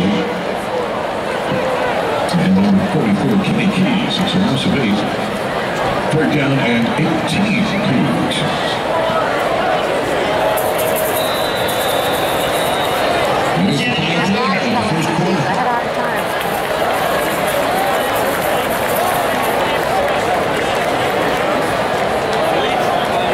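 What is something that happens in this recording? A large crowd chatters loudly all around.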